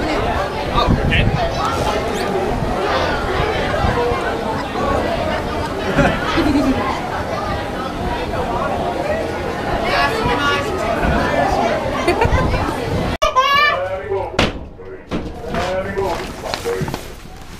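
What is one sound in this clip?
Many chickens cluck and chatter close by.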